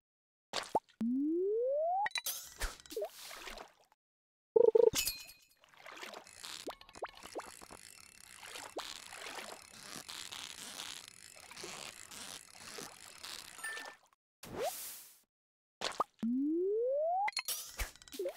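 A rising tone whirs as a fishing cast powers up.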